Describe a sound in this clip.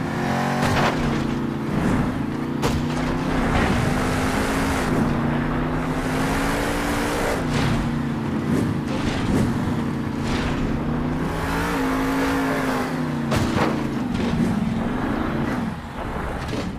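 A monster truck engine roars and revs.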